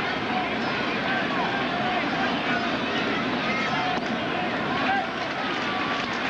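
A large stadium crowd cheers and roars, growing louder.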